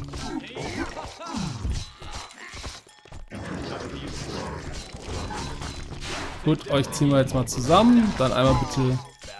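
Blades slash and strike repeatedly in a fight.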